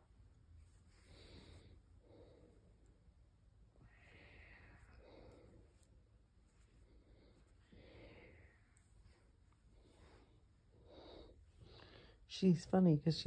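A hand strokes a cat's fur with a soft rustle, close by.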